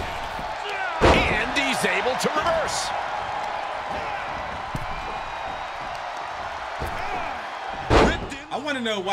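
A body slams hard onto a wrestling mat.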